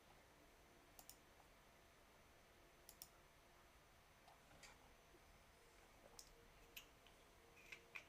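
A computer mouse clicks sharply several times.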